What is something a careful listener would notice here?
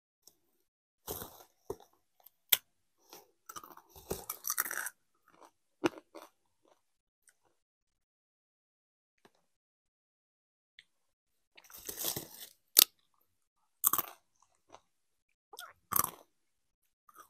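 A young woman crunches crisps close to a microphone.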